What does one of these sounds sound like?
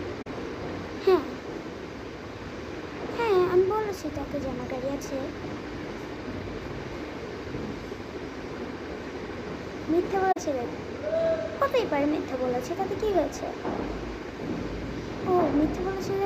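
A young girl talks close by in short phrases, with pauses.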